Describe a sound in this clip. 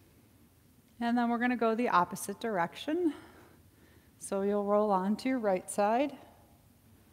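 A woman speaks calmly and slowly, close by.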